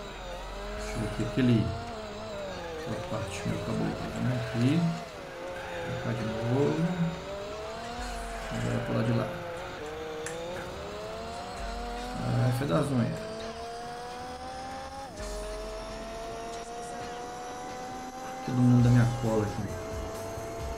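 Tyres screech through corners.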